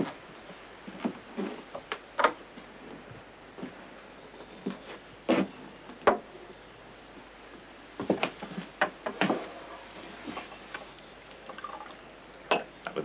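Wooden objects knock and clatter on a table.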